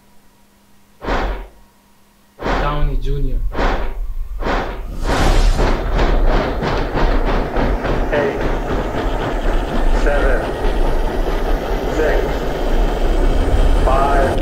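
A deep pulsing beat plays, speeding up and swelling louder.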